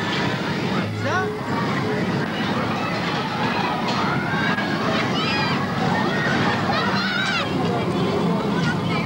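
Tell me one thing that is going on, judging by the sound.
Riders scream and shout on a spinning fairground ride.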